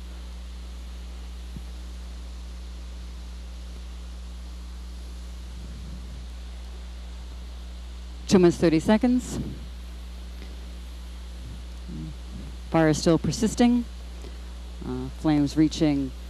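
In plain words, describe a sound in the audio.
Water sprays with a steady hiss.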